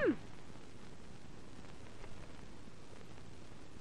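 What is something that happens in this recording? Books are shuffled and set down on a desk.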